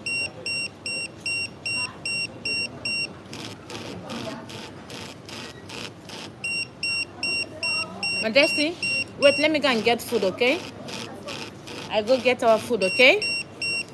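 A pager beeps in a steady repeating pattern.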